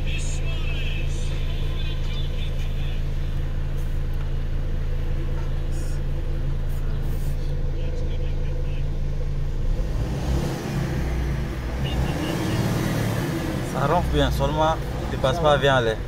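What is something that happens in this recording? An engine idles with a steady low rumble.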